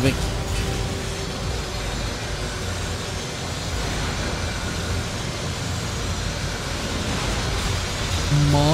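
A young man speaks into a microphone.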